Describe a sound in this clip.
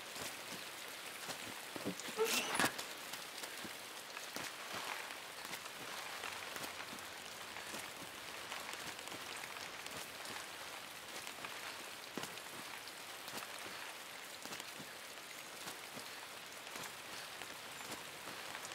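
Dry cornstalks rustle and swish as someone pushes through them.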